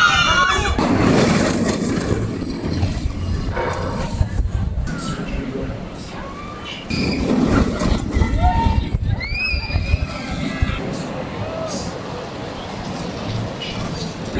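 A roller coaster roars and rattles along its track.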